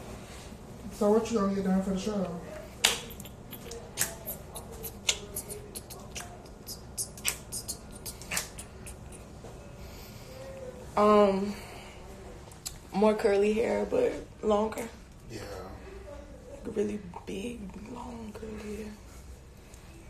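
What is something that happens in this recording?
A young woman talks close by, casually.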